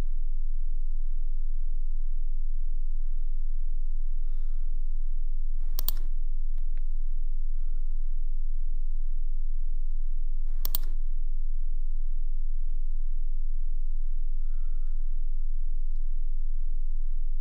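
Keys clatter softly on a laptop keyboard.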